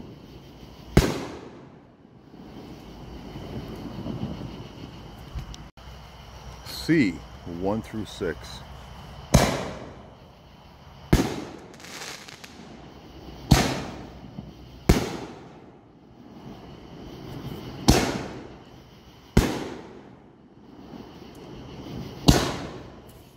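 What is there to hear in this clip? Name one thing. Fireworks burst with loud booming bangs that echo outdoors.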